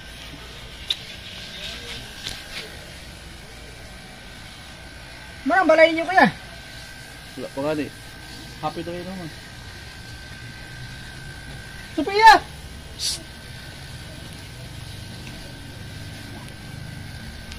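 Electric hair clippers buzz steadily.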